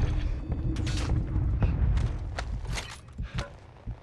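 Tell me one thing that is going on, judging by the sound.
Heavy footsteps thud quickly on a hard floor.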